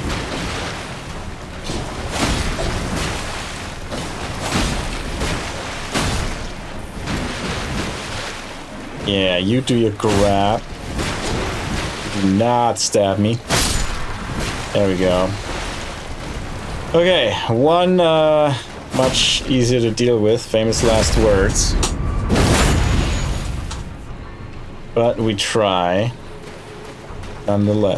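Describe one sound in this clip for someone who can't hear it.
Swords clang and strike in a fight.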